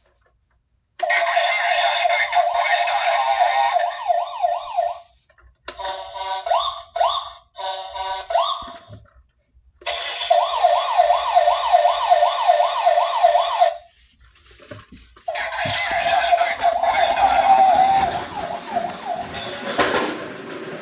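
A toy truck plays a loud, warbling electronic siren.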